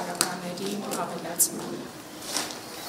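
A woman speaks calmly nearby.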